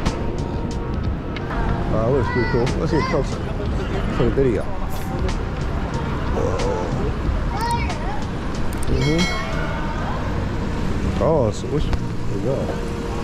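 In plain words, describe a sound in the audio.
A crowd of men and women murmurs faintly outdoors.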